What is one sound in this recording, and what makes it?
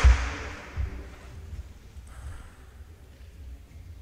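A table tennis ball bounces on a table.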